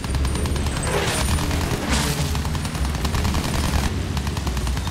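Machine guns rattle in rapid bursts.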